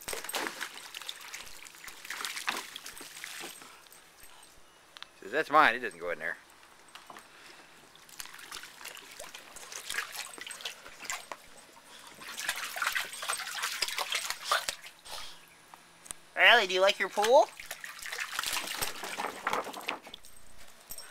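A dog splashes through shallow water.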